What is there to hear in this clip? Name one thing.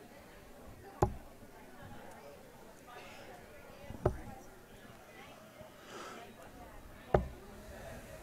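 Darts thud into a dartboard one after another.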